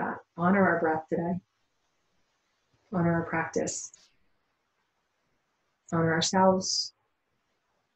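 A woman speaks calmly and softly into a close microphone, in short phrases with pauses.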